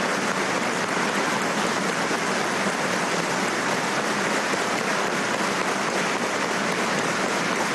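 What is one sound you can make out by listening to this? A large crowd applauds steadily in a big hall.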